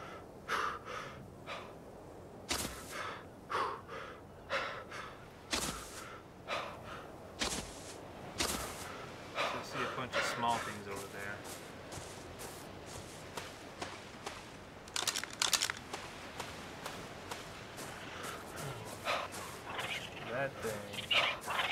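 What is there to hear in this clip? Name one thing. Footsteps thud on sand at a steady walking pace.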